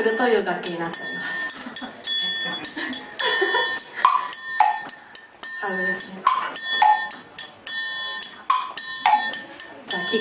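Cymbals and drums are struck in a quick rhythm.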